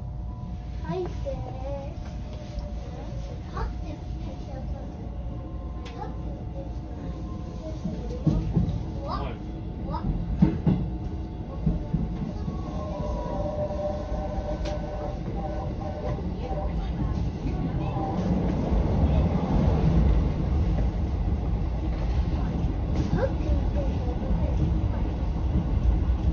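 Train wheels click and clack over rail joints.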